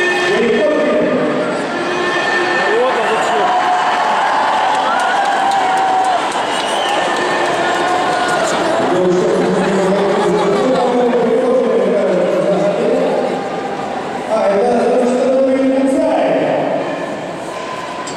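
A large crowd chants and sings loudly in an echoing arena.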